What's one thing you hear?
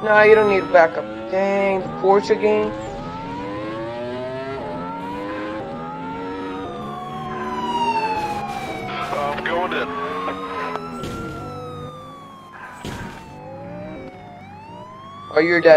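A sports car engine roars and revs at high speed.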